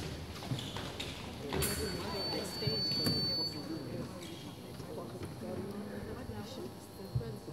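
Men and women talk nearby in a large, echoing hall.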